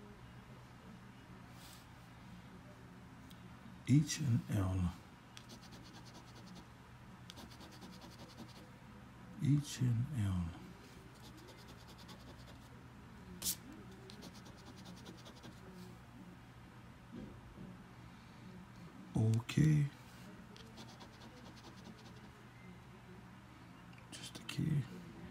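A coin scratches across a card.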